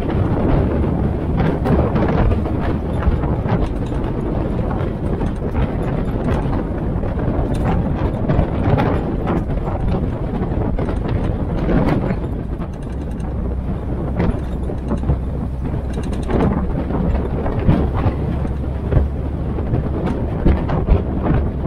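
Tyres rumble and rattle over a rough paved road.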